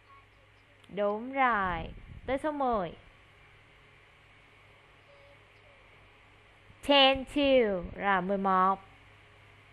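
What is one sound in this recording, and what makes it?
A woman speaks clearly and slowly through an online call.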